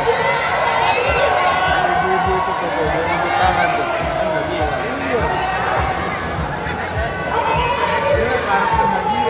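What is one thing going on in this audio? Pop music with a thumping beat plays loudly through loudspeakers.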